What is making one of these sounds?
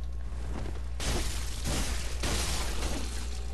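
A blade slashes into flesh with wet, heavy hits.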